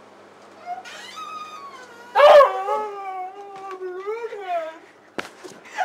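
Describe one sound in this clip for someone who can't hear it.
A young woman speaks with surprise close by.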